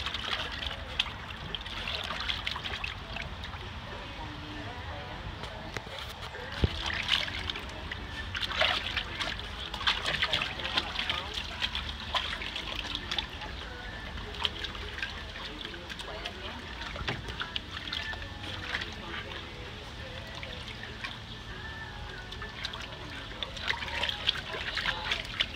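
Water splashes and sloshes as a dog paddles its paws in a shallow pool.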